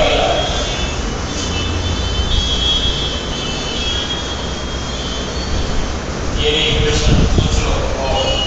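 A marker squeaks on a whiteboard in short strokes.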